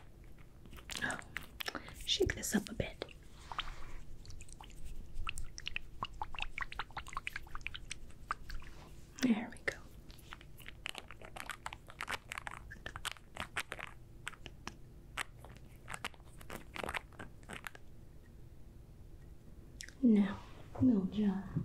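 A woman speaks softly close to a microphone.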